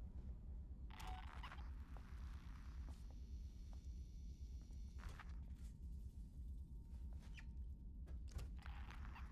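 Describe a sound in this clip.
A handheld motion tracker beeps and pings.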